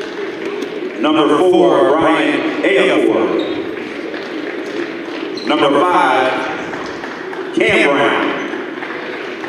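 A crowd cheers and shouts in loud bursts.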